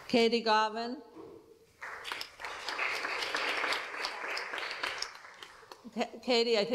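Women sing together into a microphone in a large echoing room.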